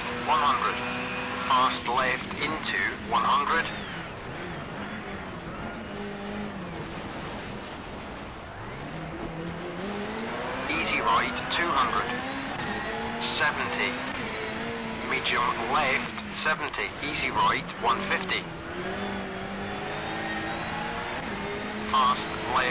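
A car engine drones and revs up and down.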